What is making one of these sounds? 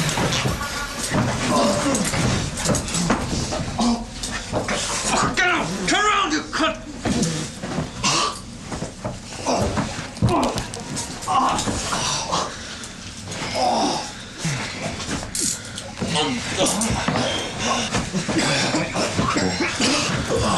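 A man speaks quietly and tensely, close by.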